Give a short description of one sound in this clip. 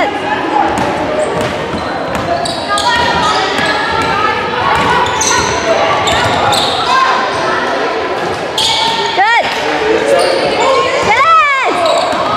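A basketball bounces on a hardwood floor in an echoing gym.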